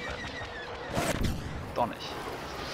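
A second explosion booms nearby.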